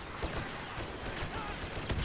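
A sci-fi blaster rifle fires.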